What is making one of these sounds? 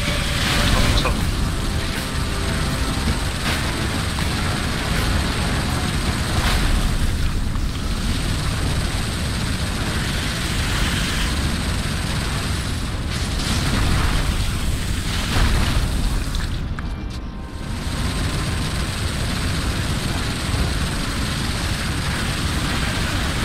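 A heavy machine gun fires in rapid, booming bursts.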